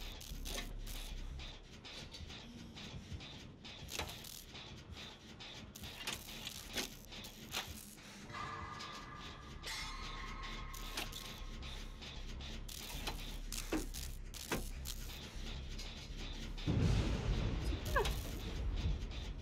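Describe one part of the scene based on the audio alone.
A machine clanks and rattles as it is repaired.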